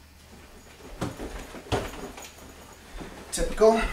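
Footsteps thud across a carpeted floor.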